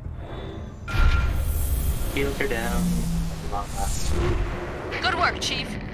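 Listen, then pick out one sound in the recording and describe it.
A spaceship engine roars with a deep rumble.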